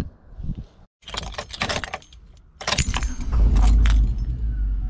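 Keys jingle close by.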